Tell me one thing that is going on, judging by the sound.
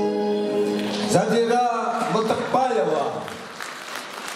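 An older woman sings into a microphone, her voice carried through loudspeakers.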